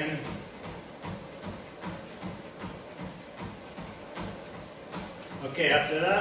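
A treadmill motor hums and whirs steadily.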